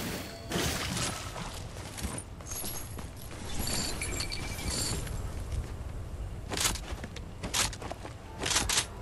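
Quick footsteps patter across hard ground.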